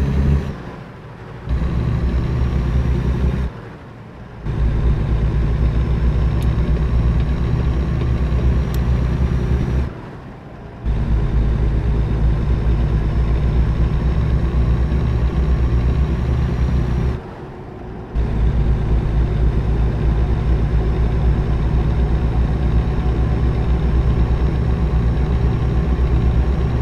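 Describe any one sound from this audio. A truck's diesel engine drones low and steady, dropping away briefly several times as gears change.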